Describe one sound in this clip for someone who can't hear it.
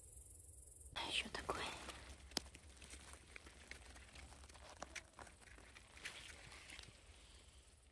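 Moss rustles and tears as a mushroom is twisted out of the ground.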